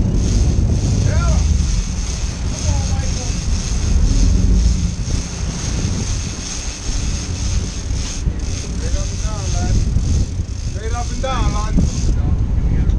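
A man shouts from across an open deck outdoors.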